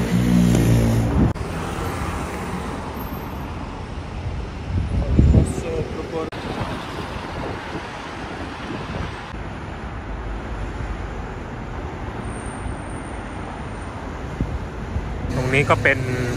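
City traffic hums and rumbles steadily outdoors.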